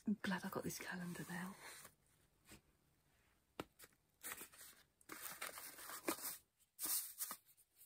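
A small cardboard drawer slides open.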